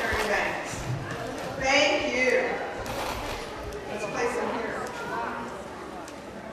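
A young woman reads aloud through a microphone in a large echoing hall.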